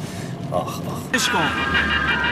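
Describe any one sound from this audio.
A young man speaks up in a car.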